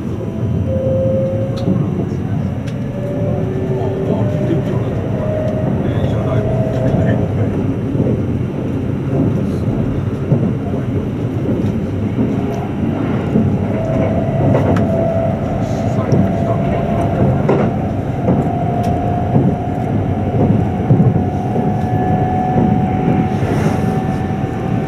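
Heard from inside, an electric express train rumbles along the track at speed.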